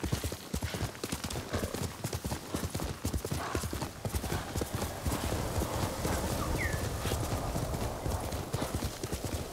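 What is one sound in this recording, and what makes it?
A horse gallops fast, its hooves thudding on grass.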